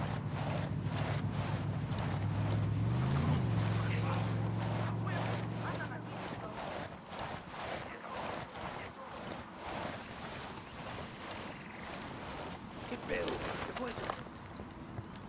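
A soldier crawls through grass with soft, rhythmic rustling.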